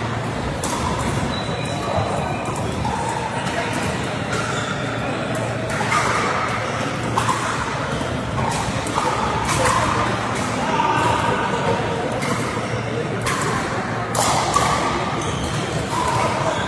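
Men and women call out and chatter across a large echoing hall.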